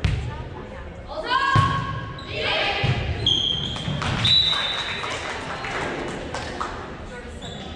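Players shout and call out to each other in an echoing hall.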